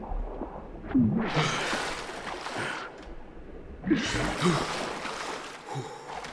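Water splashes and sloshes as a swimmer surfaces.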